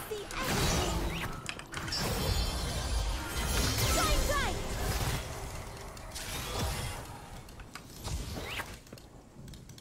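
Game combat effects clash and whoosh.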